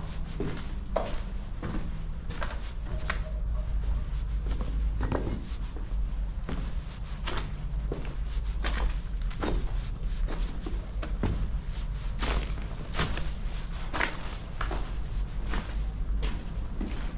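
Footsteps crunch and scrape over loose rubble and broken bricks.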